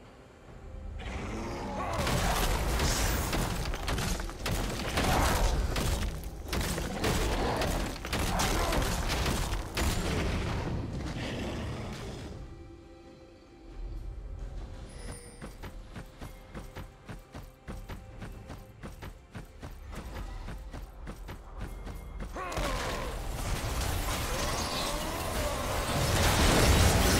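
Magic spells burst and crackle in a fight.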